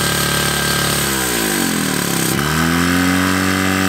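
A pump engine revs down and up again.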